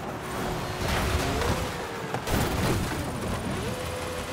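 A car slams into rocks with a loud crunch.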